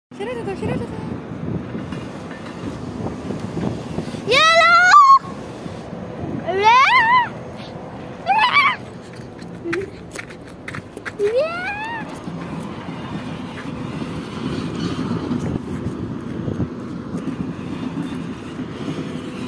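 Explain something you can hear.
A diesel train rumbles past on the tracks.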